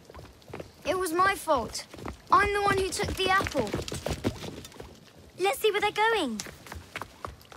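A young boy speaks anxiously and close by.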